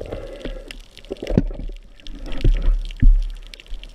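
A speared fish thrashes and knocks against a metal spear underwater.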